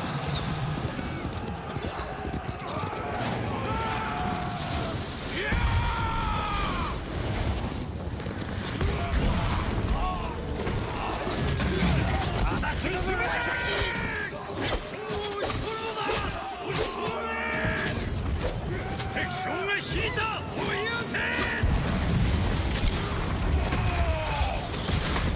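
Horses gallop over hard ground.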